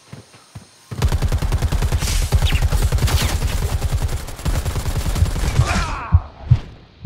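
A rifle fires in rapid automatic bursts.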